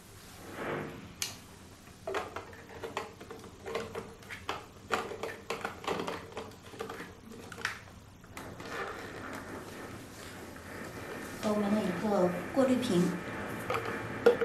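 Water pours from a plastic bottle into a container.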